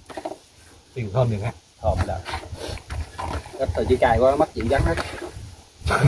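A man talks nearby with animation.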